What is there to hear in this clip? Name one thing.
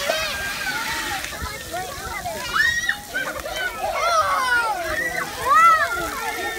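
Water sprays and splashes from fountains.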